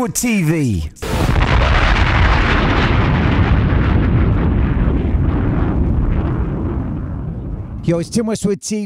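An explosion booms and roars, then slowly dies away.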